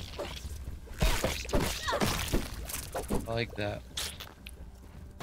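Heavy blows thud and crack against a creature.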